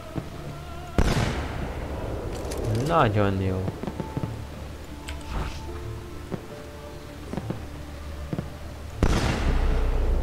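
A pistol shot bangs loudly, followed by a short echo.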